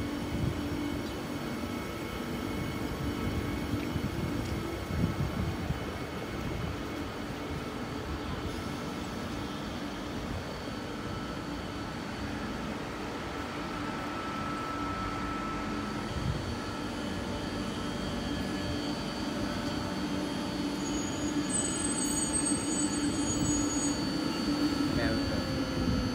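A train rolls past close by with a steady low rumble.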